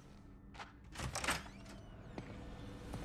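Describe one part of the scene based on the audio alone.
A heavy door unlatches with a click and swings open.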